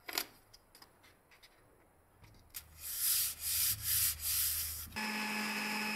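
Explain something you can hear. A hand rustles and slides a paper sheet.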